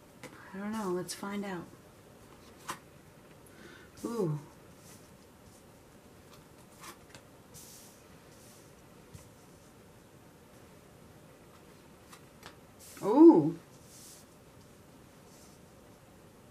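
Playing cards are laid down softly on a cloth-covered table.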